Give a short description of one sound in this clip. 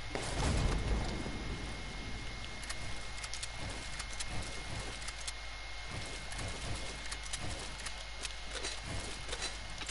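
Wooden walls are built with rapid clattering thuds.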